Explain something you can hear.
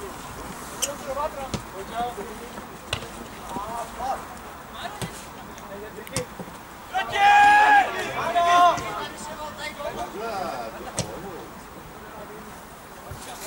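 Players shout to each other loudly across an open field outdoors.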